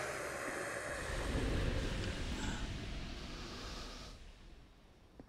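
A shimmering magical whoosh swells and fades.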